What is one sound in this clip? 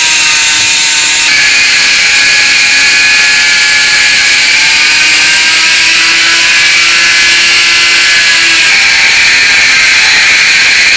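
A rotary tool whines at high speed.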